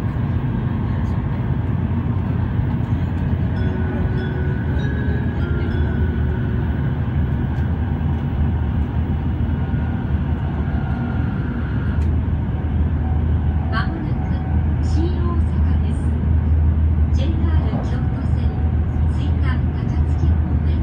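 A train rumbles steadily along the tracks, heard from inside a carriage.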